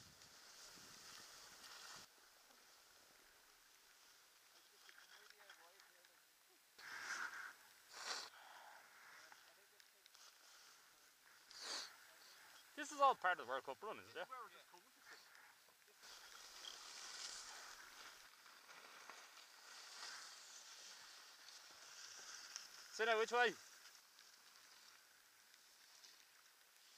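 Skis scrape and hiss over snow close by.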